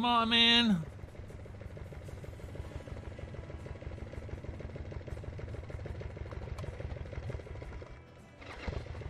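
A fuel pump hums while it runs.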